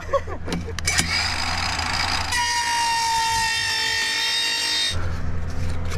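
A circular saw whirs and cuts through a plastic pipe.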